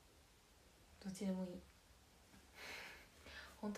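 A young woman speaks briefly and softly, close to a microphone.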